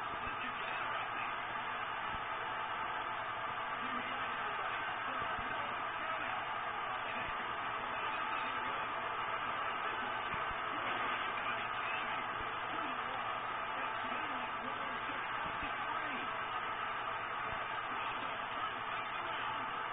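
A crowd roars steadily through a television speaker.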